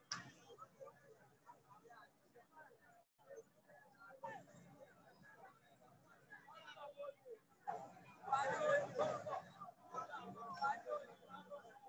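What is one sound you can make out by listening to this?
A crowd of people shouts and chants outdoors.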